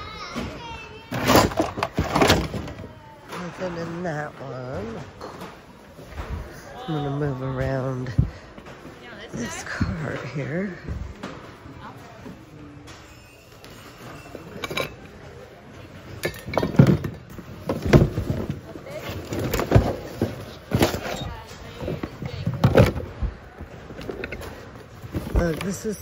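Objects clatter and rustle as a hand rummages through a pile of things.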